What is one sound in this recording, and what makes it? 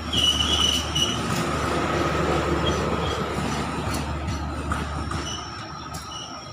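A locomotive engine hums nearby.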